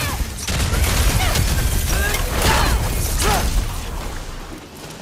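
Magic blasts crackle and roar.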